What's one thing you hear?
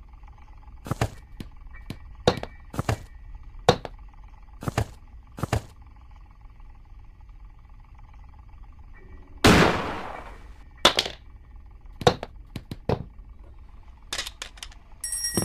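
Footsteps knock on a wooden floor at an uneven pace.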